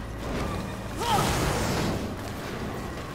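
A burst of flame roars loudly.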